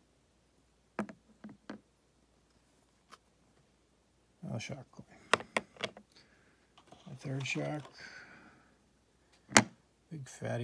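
Hard plastic cases click and clack against each other.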